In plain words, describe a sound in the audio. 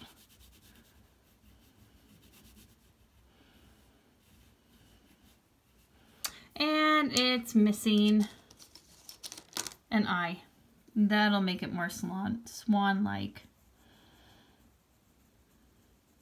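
A crayon scratches softly across paper.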